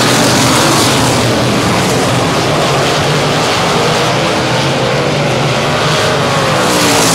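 Racing car engines roar loudly and steadily.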